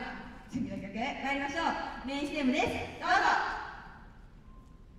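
Young girls speak with animation into microphones in a large echoing hall.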